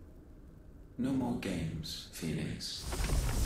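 A deep, distorted voice speaks slowly.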